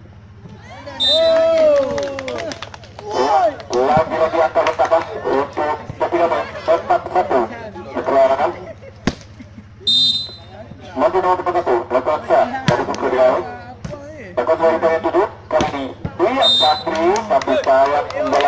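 Young men shout and cheer excitedly close by.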